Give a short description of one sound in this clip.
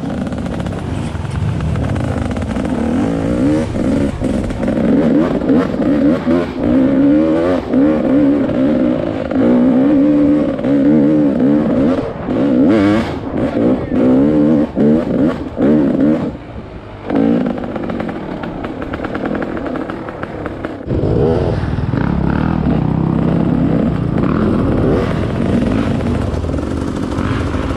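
A dirt bike engine revs and roars up close, rising and falling.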